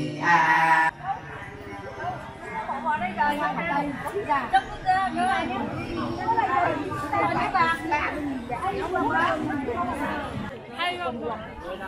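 Several women chat animatedly close by, outdoors.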